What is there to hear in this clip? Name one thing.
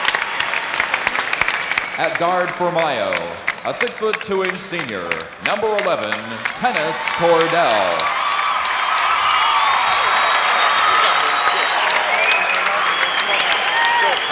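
A large crowd cheers and applauds in a big echoing arena.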